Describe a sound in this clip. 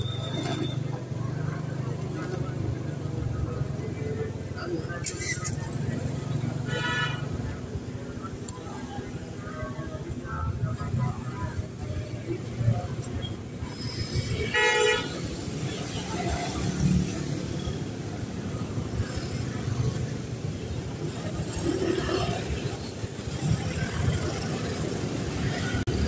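A motorbike engine idles and rumbles steadily.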